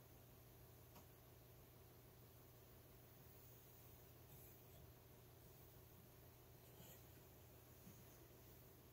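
Wooden loom parts click softly as cards are turned.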